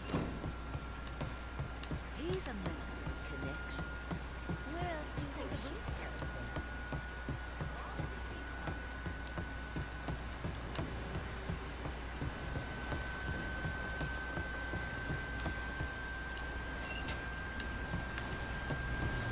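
Quick footsteps run on a wooden floor.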